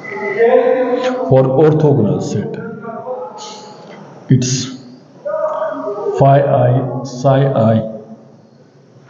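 A man speaks steadily in a lecturing tone, close by.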